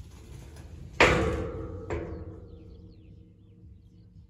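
A metal gate clangs loudly twice and rings out.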